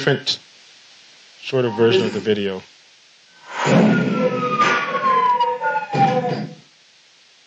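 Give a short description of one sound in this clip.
A man speaks into a microphone in a room, in short bursts.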